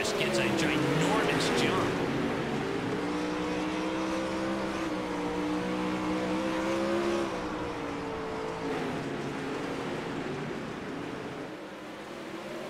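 Racing car engines roar loudly at high revs.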